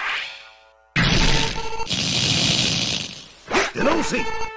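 An electric crackle bursts and hisses.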